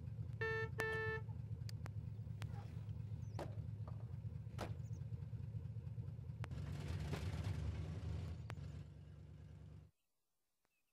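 A car engine rumbles steadily and then cuts off.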